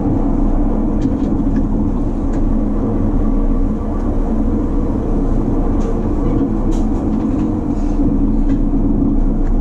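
Clicks and rattles of the carriage sound now and then.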